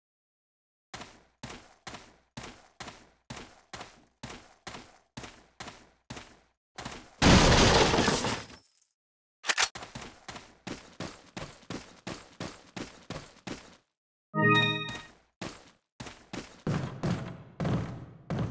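Footsteps crunch steadily on dirt.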